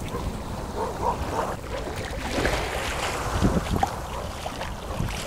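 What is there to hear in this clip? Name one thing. Small waves lap gently on a sandy shore.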